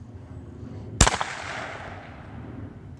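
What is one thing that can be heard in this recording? A shotgun fires a single loud blast that rings out across open ground.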